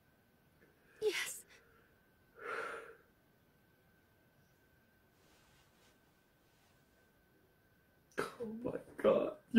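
A young man groans and sighs close by.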